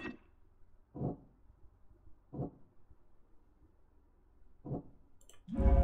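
A short interface click sounds a few times.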